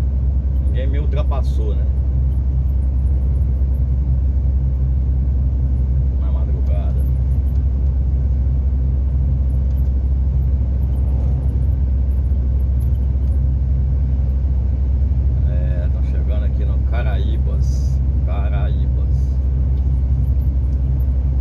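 A vehicle's engine hums low and steady from inside the cab.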